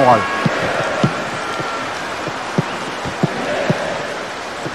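A football is kicked with short dull thumps.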